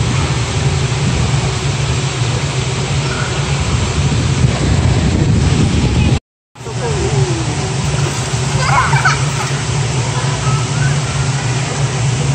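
Pool jets churn and bubble the water steadily.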